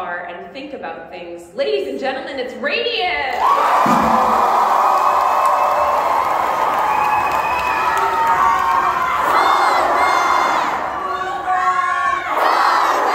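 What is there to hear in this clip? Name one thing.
A large choir of young women sings loudly in an echoing hall.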